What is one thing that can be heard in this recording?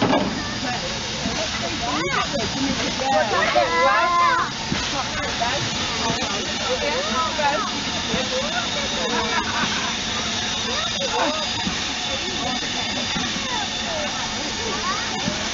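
Adults and children chatter outdoors close by.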